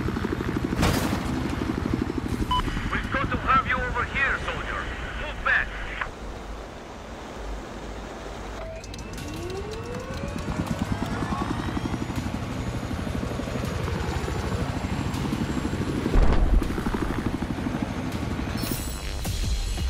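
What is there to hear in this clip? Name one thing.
A helicopter rotor thumps steadily close by.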